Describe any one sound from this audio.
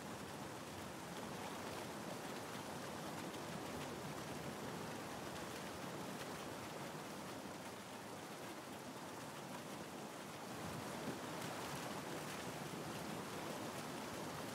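Water rushes and splashes steadily.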